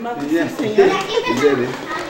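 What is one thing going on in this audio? A middle-aged woman talks loudly outdoors.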